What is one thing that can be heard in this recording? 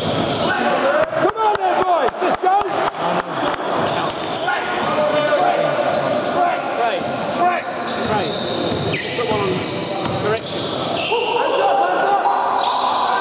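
A basketball bounces on a wooden floor in a large echoing hall.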